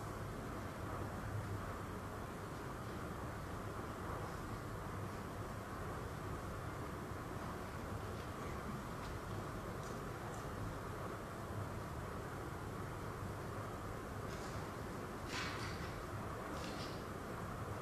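A man speaks steadily through a microphone in a large echoing hall.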